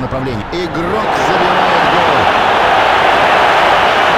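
A stadium crowd roars loudly and keeps cheering.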